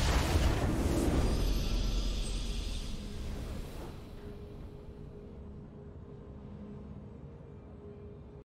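A game victory fanfare swells and fades.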